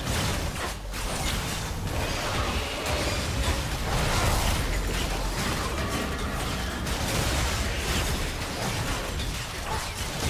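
Game spell effects whoosh, crackle and thud in a busy fight.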